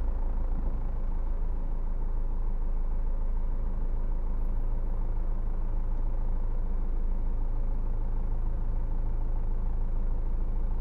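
A car engine idles with a low, steady hum in slow traffic.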